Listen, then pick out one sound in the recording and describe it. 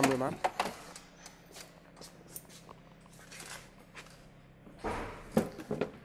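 A plastic car bumper knocks and rattles as it is pulled off.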